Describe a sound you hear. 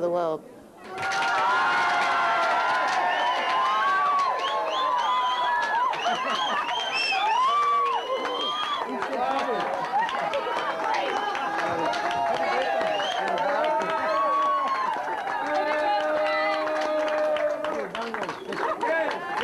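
A crowd of men and women chatter loudly and excitedly close by.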